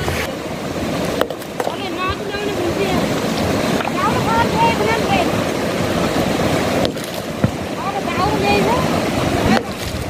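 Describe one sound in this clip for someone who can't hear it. A hammer strikes rock with sharp knocks.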